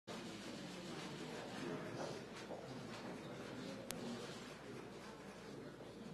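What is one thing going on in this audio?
A crowd of people murmurs and chatters in a room.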